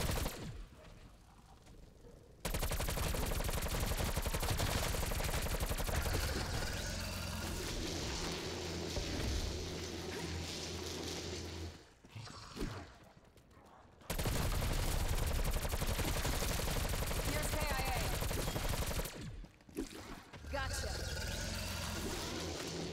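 A woman talks close to a microphone.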